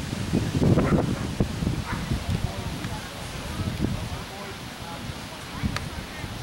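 Men and women chat faintly in the distance outdoors.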